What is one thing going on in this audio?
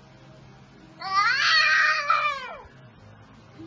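A baby squeals happily close by.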